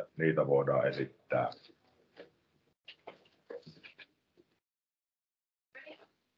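A middle-aged man speaks calmly through an online call.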